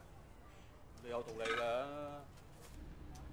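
A man answers in a relaxed voice.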